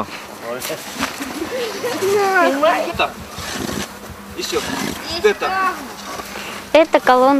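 A boy speaks and laughs close by.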